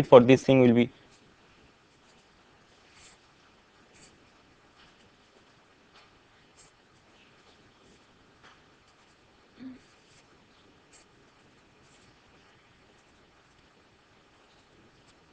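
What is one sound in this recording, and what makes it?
A pen scratches and taps on paper.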